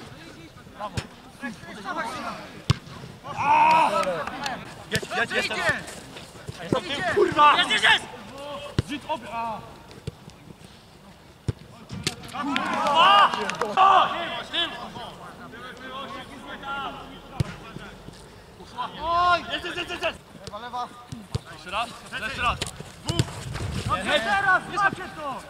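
Young men shout to one another outdoors during a football match.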